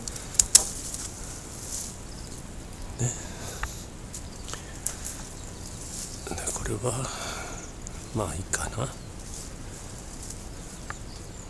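Leaves rustle as branches are handled.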